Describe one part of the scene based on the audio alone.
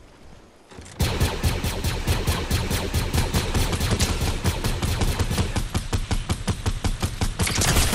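A rifle fires in rapid bursts of loud shots.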